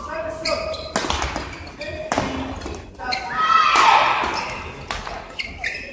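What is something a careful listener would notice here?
Rackets smack a shuttlecock back and forth in a rally.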